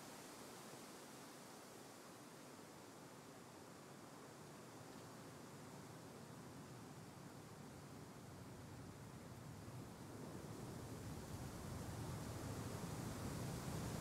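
Hands rustle and scrape in loose soil.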